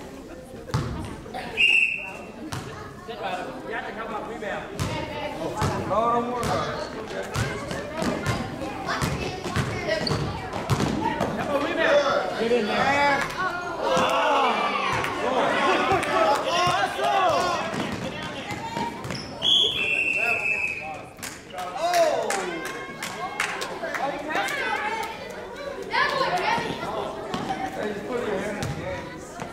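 A basketball bounces on a gym floor, echoing in a large hall.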